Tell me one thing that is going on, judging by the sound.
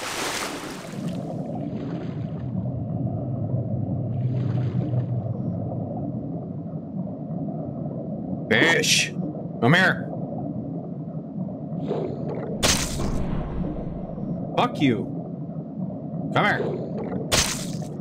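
A low, muffled underwater rumble goes on steadily.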